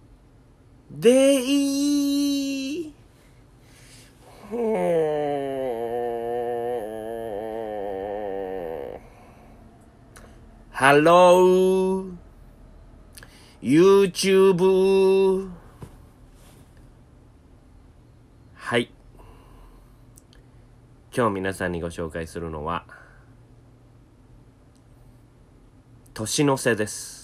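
A young man sings in long, held notes, close to a microphone, in short bursts with pauses between.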